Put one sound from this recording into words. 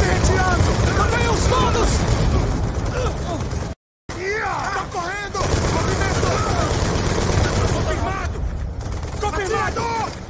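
Rapid gunfire rattles loudly and without pause.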